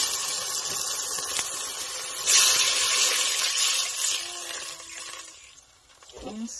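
Sauce sizzles in a hot pot.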